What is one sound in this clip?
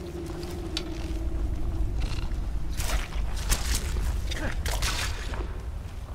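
A bowstring twangs as arrows fly.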